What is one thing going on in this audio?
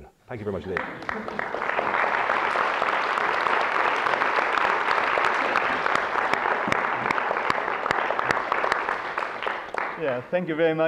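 An audience applauds loudly.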